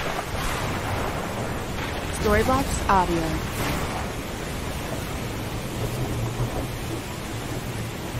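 Waves churn and wash across open water.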